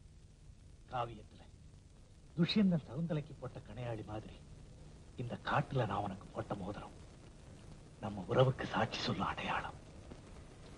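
A young man speaks softly and tenderly, close by.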